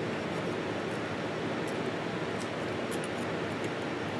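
Flaky pastry crackles as a man breaks it apart.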